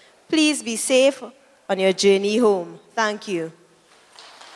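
A young woman speaks with animation into a microphone in an echoing room.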